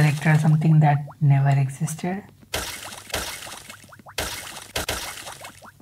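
Coins chime in quick bursts as they are collected in a video game.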